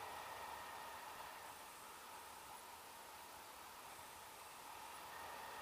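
Wind rushes steadily past outdoors high in the air.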